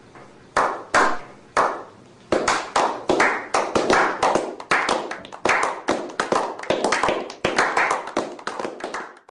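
Several men snap their fingers in a steady rhythm that quickens, each snap ringing out with a short echo.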